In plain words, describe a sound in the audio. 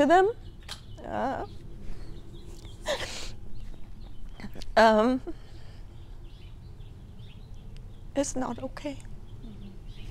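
A middle-aged woman speaks slowly and with emotion, close to a microphone.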